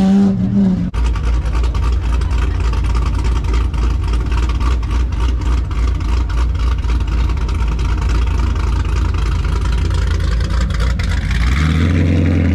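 A V8 sedan idles with a lumpy, pulsing rumble.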